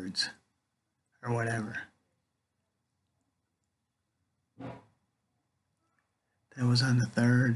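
A middle-aged man speaks calmly and close, in short bursts with pauses.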